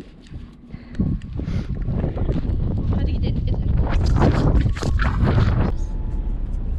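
Hands rub and knock against a microphone.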